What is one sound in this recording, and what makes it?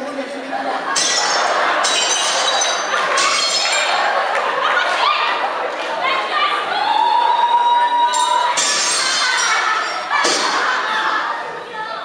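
A young woman sings solo into a microphone.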